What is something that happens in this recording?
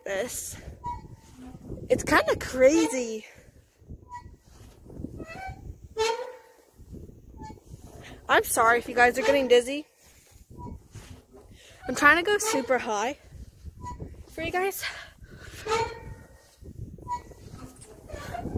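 A swing's chains creak and squeal with each swing back and forth.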